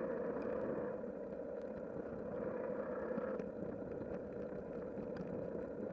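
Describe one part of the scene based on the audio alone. A car's engine hums steadily as it drives along a road.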